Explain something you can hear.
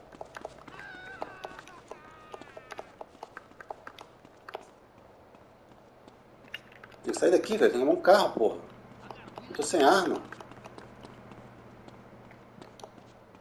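Quick footsteps run on hard pavement.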